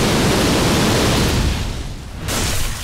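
Fire roars in a loud blast.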